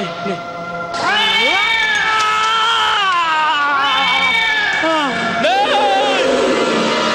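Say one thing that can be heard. A cat yowls loudly.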